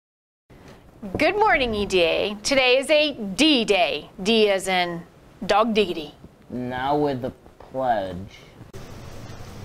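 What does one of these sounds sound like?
A middle-aged woman speaks with animation into a microphone, close by.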